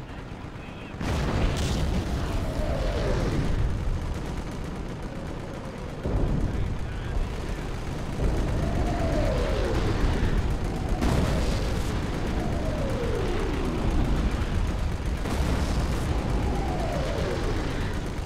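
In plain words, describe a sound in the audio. Shells explode with deep, rumbling booms.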